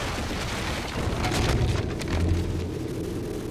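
A wooden tower collapses with a heavy crash and deep rumble.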